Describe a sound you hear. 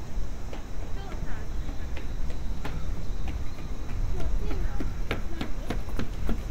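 A stroller's wheels rattle along a walkway nearby.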